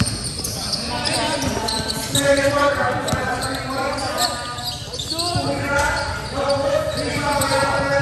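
A crowd of spectators cheers and shouts nearby.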